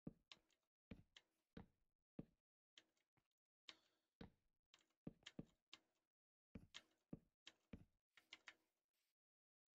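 Footsteps thud on wooden and grassy ground at a steady walking pace.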